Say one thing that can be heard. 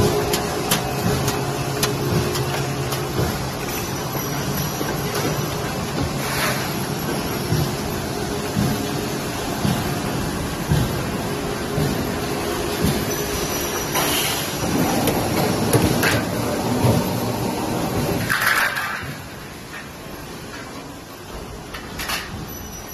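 Metal rattles and clanks as a strip feeds through the rollers.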